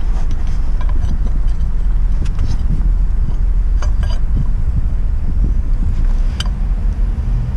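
Metal parts clink and tap.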